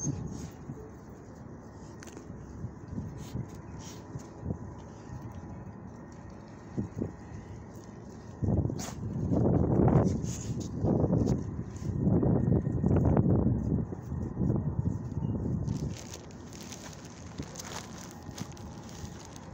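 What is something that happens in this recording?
Dogs' paws scuff on gravel.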